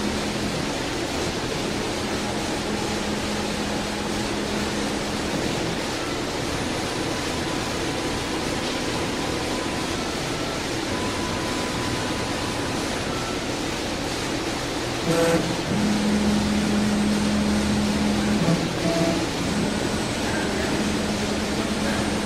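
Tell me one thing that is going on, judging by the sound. A gantry machine moves along its rails with a low mechanical hum.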